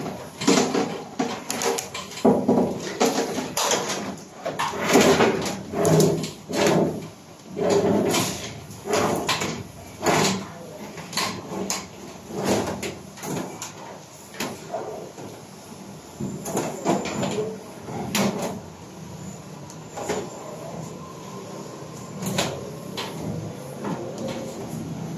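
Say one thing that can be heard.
Cables rustle and scrape as they are pulled and handled.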